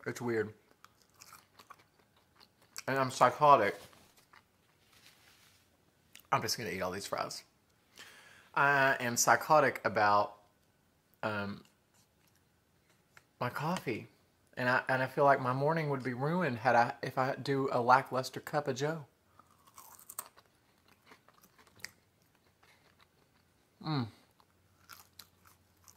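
A man chews food with his mouth open.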